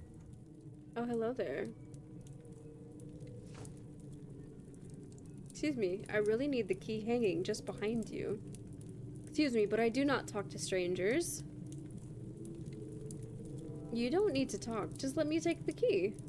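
A young woman reads out lines with animation, close to a microphone.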